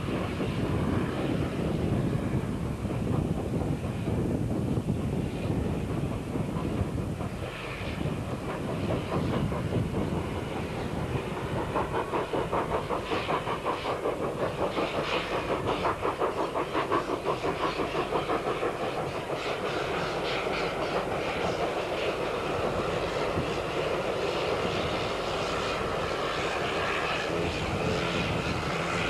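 Steam locomotives chuff rhythmically as they haul a train.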